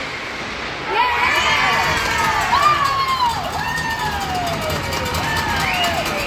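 Spectators shout and cheer from the stands.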